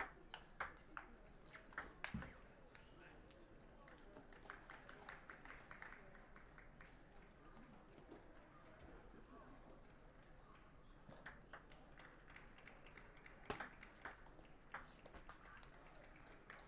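A ball clicks back and forth off paddles and a table in a quick rally.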